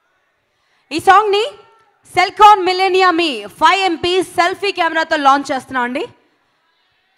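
A woman speaks with animation into a microphone over loudspeakers in a large hall.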